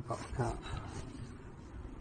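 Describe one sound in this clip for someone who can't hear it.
Gloved hands rustle through grass.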